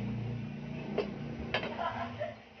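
A glass lid clinks down onto a metal pot.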